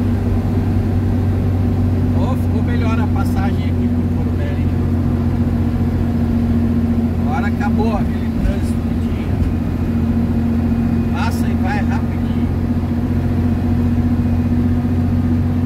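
Tyres roll on a paved road with a steady rumble.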